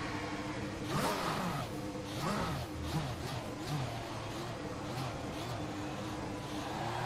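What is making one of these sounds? A racing car engine revs sharply, rising and falling as it shifts gears.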